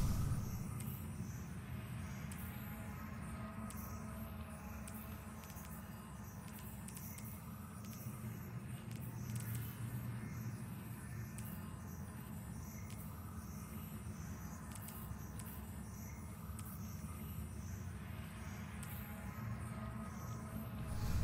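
Soft game menu clicks tick as items are selected.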